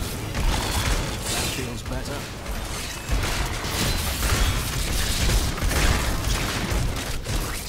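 Magic spells crackle and explode in rapid bursts.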